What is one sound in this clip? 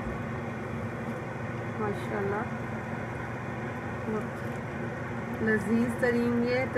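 Hot oil sizzles and crackles steadily as pieces of food fry.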